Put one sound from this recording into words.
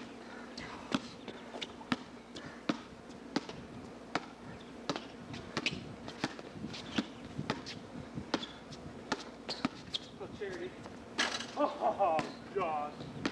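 A basketball bounces on concrete outdoors.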